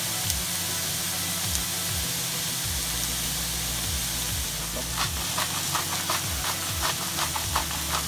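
Onions sizzle steadily in a hot pan.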